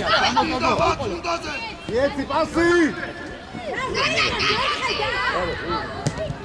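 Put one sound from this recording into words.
Young players shout to each other across an outdoor field.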